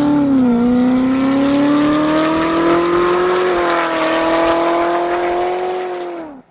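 A sports car's engine roars loudly as it accelerates away, its pitch climbing through the gears.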